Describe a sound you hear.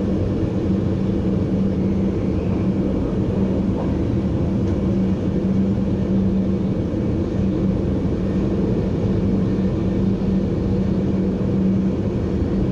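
A train rumbles steadily along the rails, heard from the cab.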